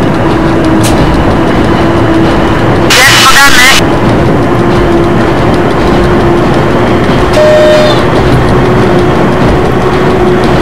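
A train rumbles steadily along the tracks, heard from inside the cab.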